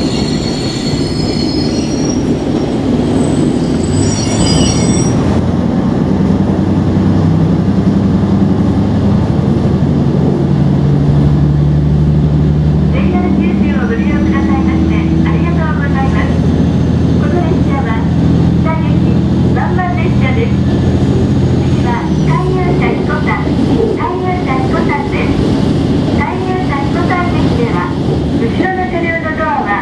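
A train engine hums and rumbles steadily as the train rolls along.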